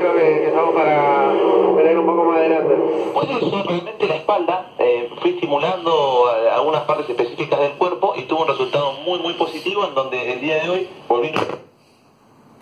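Music plays from a stereo loudspeaker.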